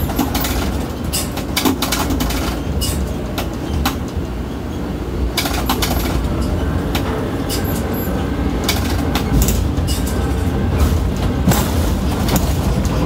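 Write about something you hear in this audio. Metal clicks and clanks sharply from a crane's lifting gear.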